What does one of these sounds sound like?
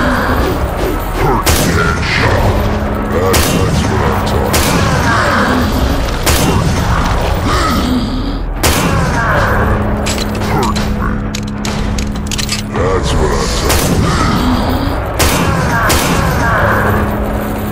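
Monsters growl and snarl close by.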